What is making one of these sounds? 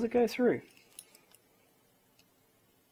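Small plastic parts click against each other in the hands.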